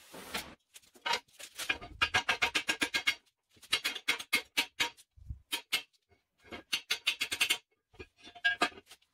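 A hammer strikes metal with ringing blows.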